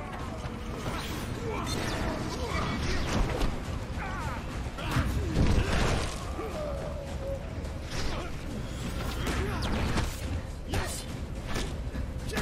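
Swords clash and thud in a fight.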